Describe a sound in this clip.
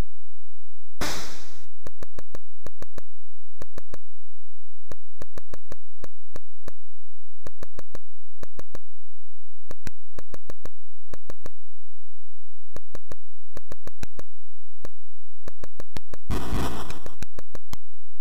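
A burst of electronic noise hisses briefly.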